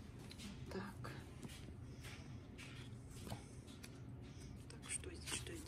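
A paper card rustles as it is handled.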